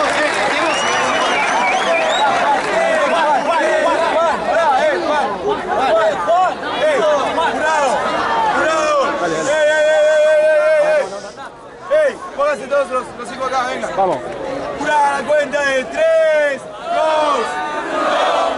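A young man raps with animation into a microphone over a loudspeaker.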